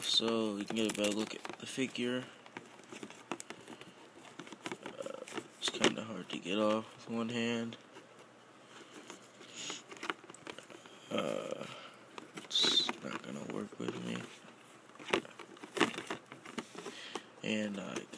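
Fingers rustle and tap against stiff plastic packaging.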